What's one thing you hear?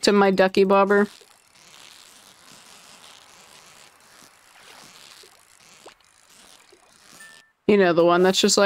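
A fishing reel whirs softly as a line is reeled in.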